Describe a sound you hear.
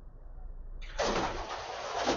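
A train door slides open with a loud rush of noise.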